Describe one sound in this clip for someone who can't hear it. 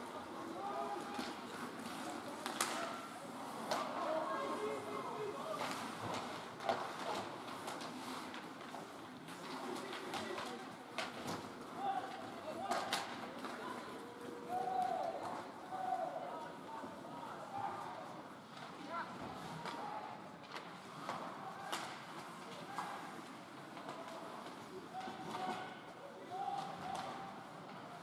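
Young hockey players shout to each other across the ice.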